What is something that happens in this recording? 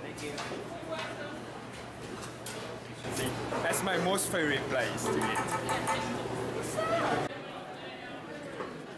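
A crowd murmurs in a large room.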